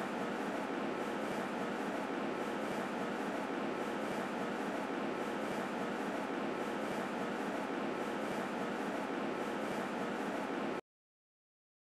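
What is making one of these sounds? Water runs from a tap into a sink.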